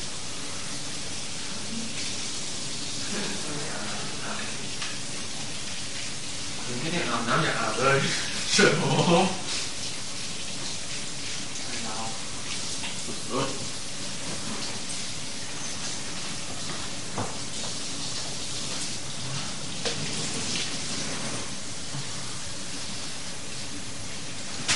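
Small objects clatter and knock on a table.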